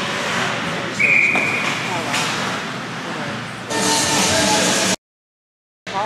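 Skates scrape and hiss across the ice.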